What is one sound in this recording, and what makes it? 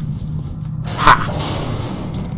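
A lift jolts into motion with a loud metallic clank.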